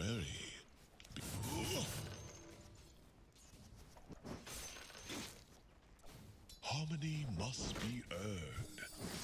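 Fantasy battle sound effects clash and burst as characters fight.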